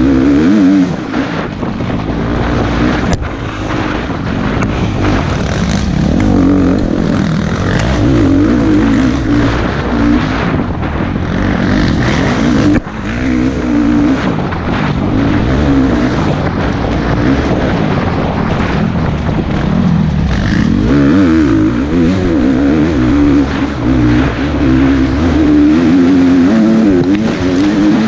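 Tyres crunch and thump over a rough dirt trail.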